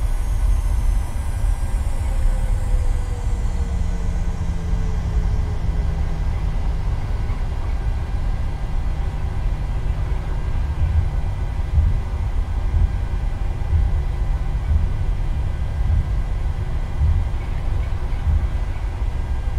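Tyres rumble over a runway.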